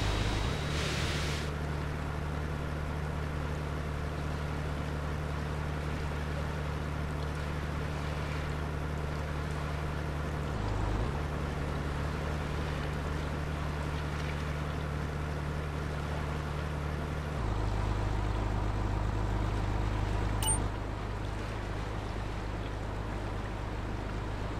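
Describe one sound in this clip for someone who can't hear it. A car engine hums steadily at a low pitch.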